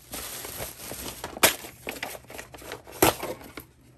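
Cardboard and paper rustle and scrape as a box is opened.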